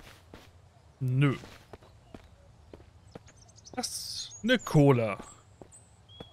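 A man speaks briefly into a close microphone, with bursts of exclamation.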